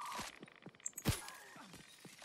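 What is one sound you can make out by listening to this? A pistol fires a single shot.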